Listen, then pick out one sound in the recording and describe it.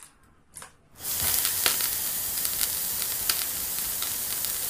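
A toy pot sizzles loudly and steadily.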